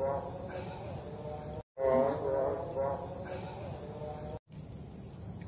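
An elderly man exclaims with a long drawn-out cry close by.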